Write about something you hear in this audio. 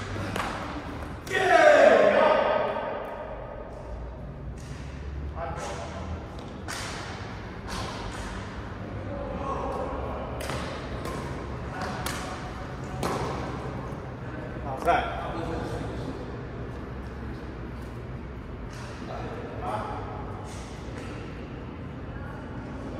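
Sports shoes squeak and thud on the court floor.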